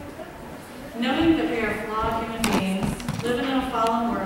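A woman sings nearby in a reverberant hall.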